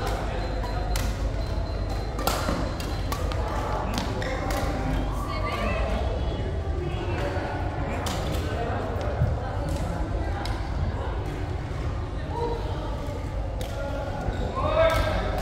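Rackets sharply smack a shuttlecock back and forth.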